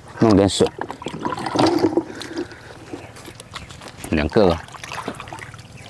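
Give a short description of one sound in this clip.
Shallow water splashes softly around wading feet.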